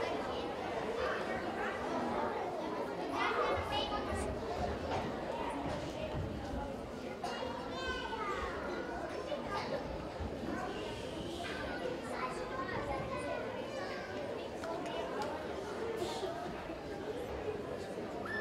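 A large children's choir sings together in a hall.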